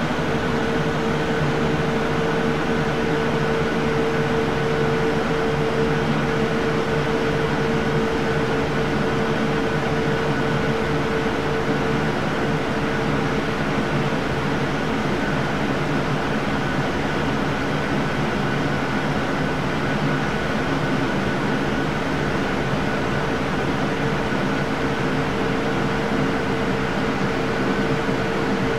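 Jet engines roar steadily in flight.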